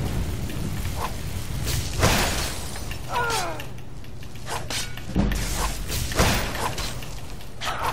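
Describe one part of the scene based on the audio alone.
A sword strikes a body with sharp slashing hits.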